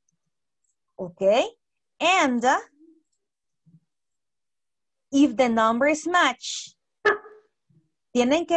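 A woman speaks with animation through an online call microphone.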